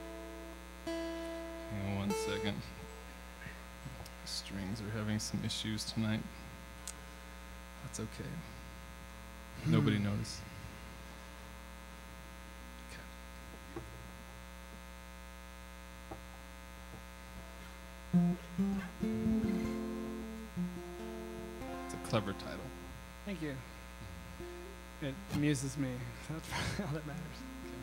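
Two acoustic guitars play together.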